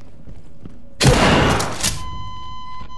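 A loud burst of gunfire rings out close by.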